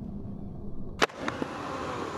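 A skateboard lands with a sharp clack.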